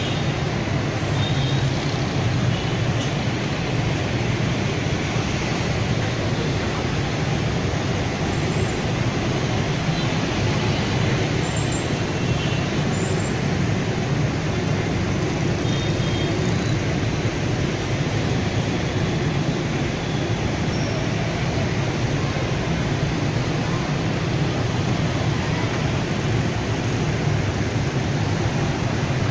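Motorbike engines buzz past close by.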